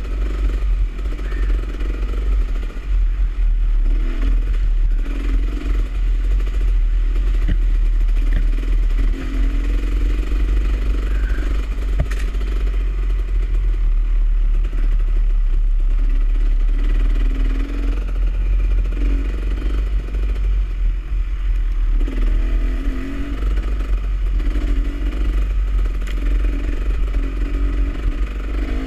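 A dirt bike engine revs and drones up close.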